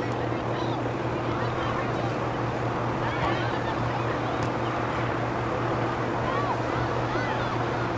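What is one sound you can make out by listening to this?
Young players shout and call out faintly across an open field outdoors.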